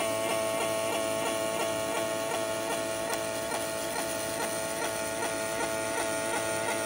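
A machine ticks in a quick, even rhythm.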